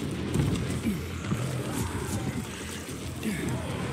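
Gloved hands grab and thump against a stone ledge.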